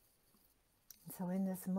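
An elderly woman speaks calmly close to a microphone.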